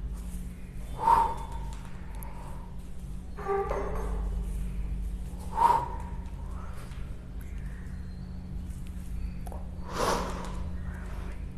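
A man exhales sharply.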